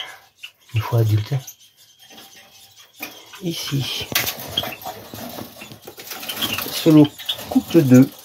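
Small birds chirp and twitter.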